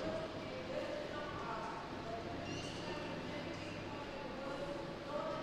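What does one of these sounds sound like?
A middle-aged man speaks calmly into a microphone, heard through a loudspeaker outdoors.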